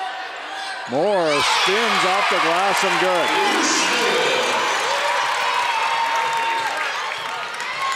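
A crowd in a large echoing gym cheers loudly.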